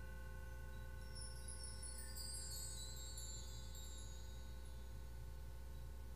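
Wind chimes shimmer with a light, tinkling cascade.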